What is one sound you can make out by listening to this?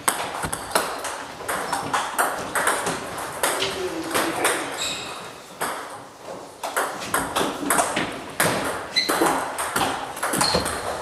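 A ping-pong ball clicks sharply back and forth against paddles and a table in an echoing room.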